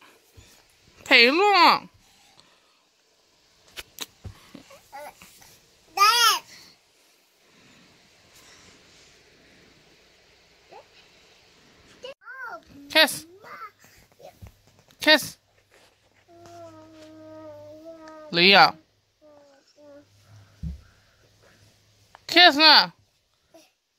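A toddler squeals loudly in high bursts.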